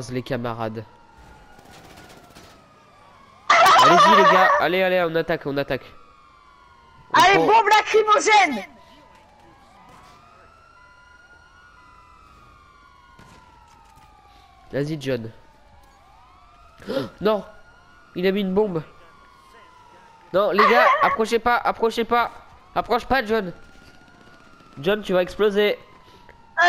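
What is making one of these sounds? Police sirens wail on and off nearby.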